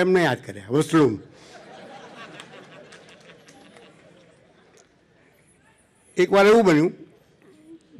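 An elderly man speaks slowly into a microphone, drawing out his words.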